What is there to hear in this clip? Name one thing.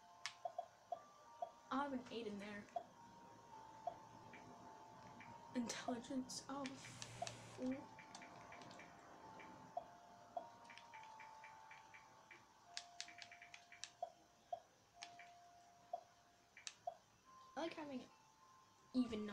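Short electronic menu beeps sound again and again.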